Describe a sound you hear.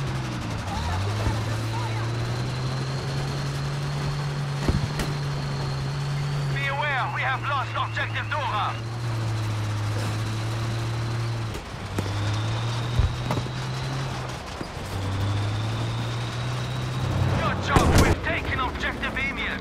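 A tank engine rumbles steadily and grinds along.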